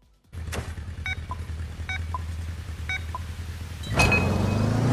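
Countdown beeps sound in quick succession.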